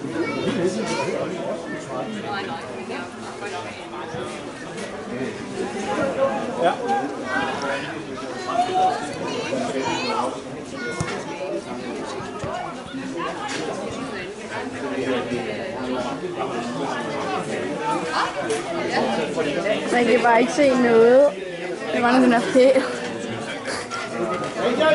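Men talk and call out close by, outdoors.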